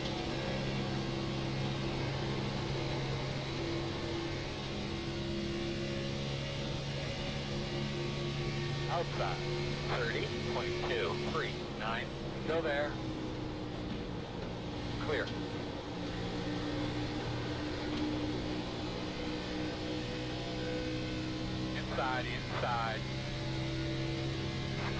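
A racing car engine drones steadily at high revs.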